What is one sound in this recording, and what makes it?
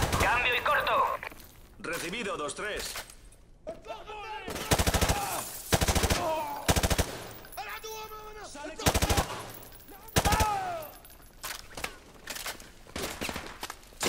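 A rifle fires in loud bursts, echoing off the walls.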